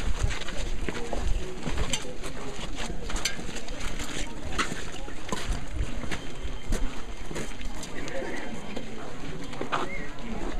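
Footsteps crunch on gritty ground.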